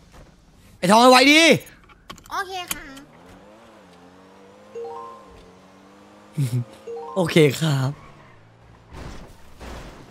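A car engine hums and revs as the car drives off.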